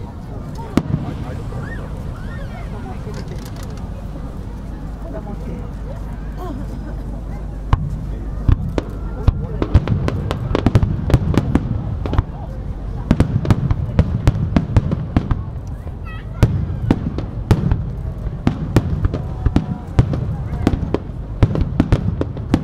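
Fireworks burst with loud booms that echo.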